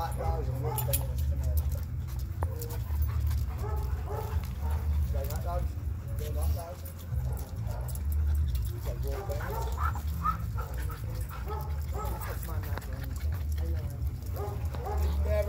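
Dogs pant and scuffle playfully.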